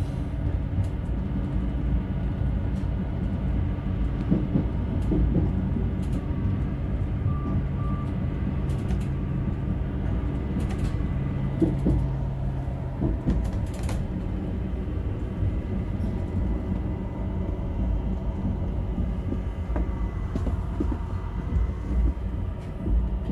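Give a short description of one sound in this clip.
Wheels clatter and rumble on the rails.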